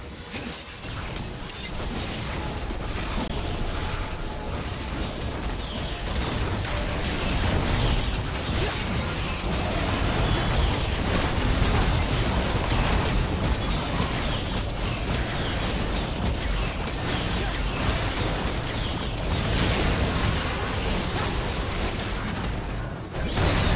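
Video game battle effects crackle and boom as spells and blows land.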